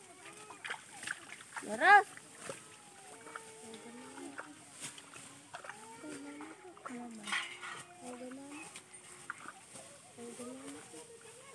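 Women talk calmly in the distance.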